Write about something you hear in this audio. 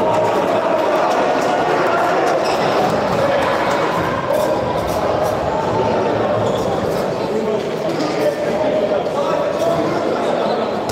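Sneakers squeak on a hard floor in a large echoing hall.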